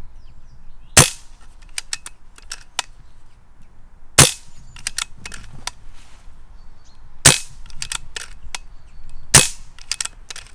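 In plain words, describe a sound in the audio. An air rifle fires with a sharp crack.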